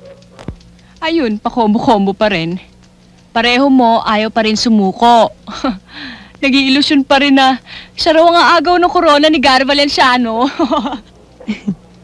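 A woman speaks with animation and a smile in her voice, close by.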